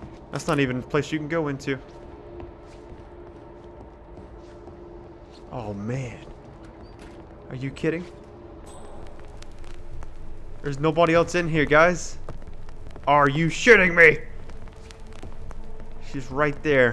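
Soft footsteps creep across a wooden floor.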